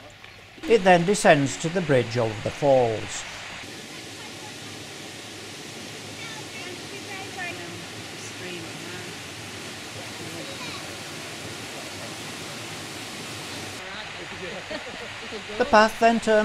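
A waterfall splashes and rushes over rocks.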